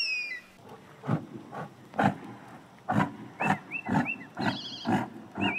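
A cow snorts and grunts close by.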